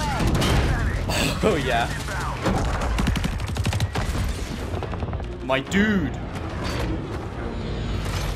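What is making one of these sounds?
Explosions rumble with a deep boom.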